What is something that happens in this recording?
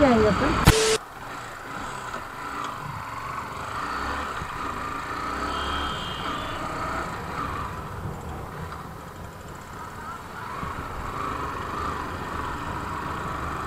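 Wind rushes past the rider.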